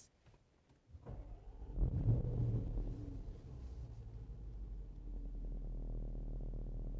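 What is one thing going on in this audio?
A car engine starts and settles into a low, steady idle.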